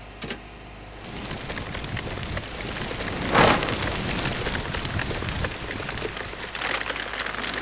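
A large plant's tendrils rustle and creak as they writhe.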